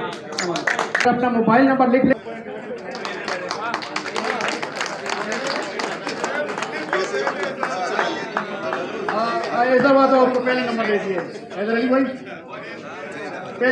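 A middle-aged man speaks with animation through a loudspeaker in an echoing hall.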